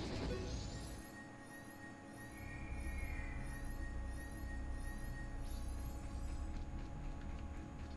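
Bright magical chimes twinkle and rise repeatedly.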